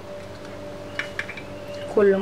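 An egg cracks against the rim of a bowl.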